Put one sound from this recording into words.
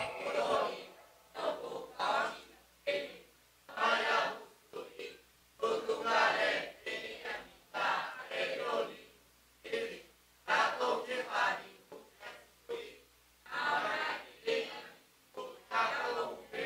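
A man speaks with animation through a microphone in a room with some echo.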